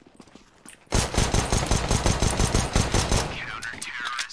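A pistol fires a rapid string of shots.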